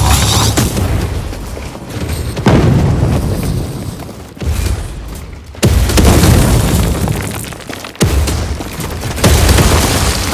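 Footsteps crunch over loose gravel.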